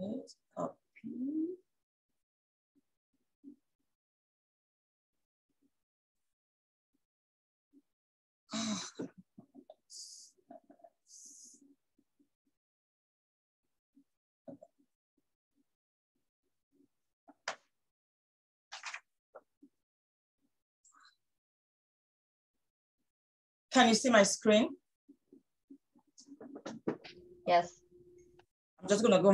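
A woman speaks calmly and close to a microphone, with long pauses.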